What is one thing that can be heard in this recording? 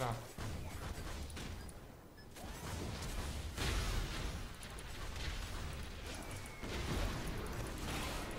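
Game spell effects crackle and whoosh in bursts.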